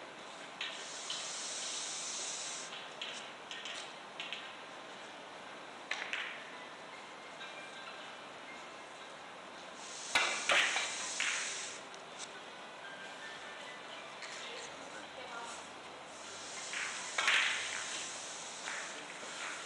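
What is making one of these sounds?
A brush swishes briskly across a cloth in short strokes.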